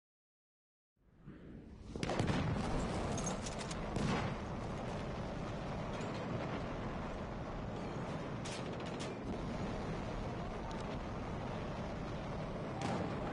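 Battle noise rumbles steadily with scattered gunshots.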